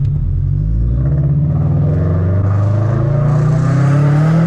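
A car engine revs up as the car pulls away.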